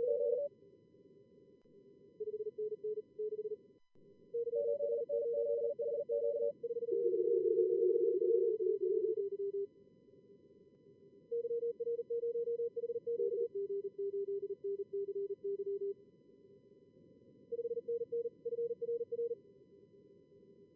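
Radio static hisses steadily in the background.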